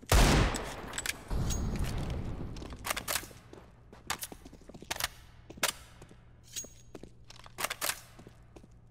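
Weapons are swapped with sharp metallic clicks.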